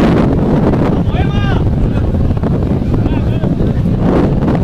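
Players shout in the distance across an open field.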